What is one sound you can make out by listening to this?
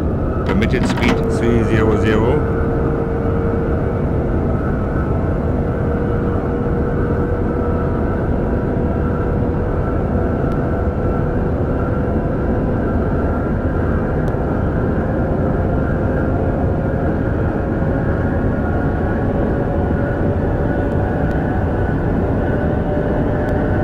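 An electric train motor hums and slowly rises in pitch as it speeds up.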